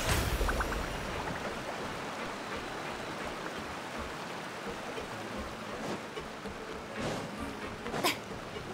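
Sparkling magical effects chime and whoosh in a video game.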